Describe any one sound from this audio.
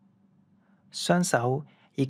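A man speaks briefly and clearly, close by.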